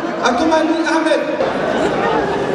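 A man speaks with animation into a microphone over a loudspeaker.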